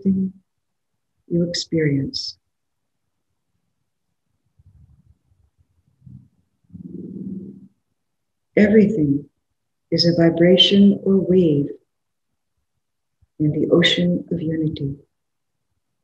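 An older woman speaks slowly and calmly, heard through a microphone over an online call, with long pauses.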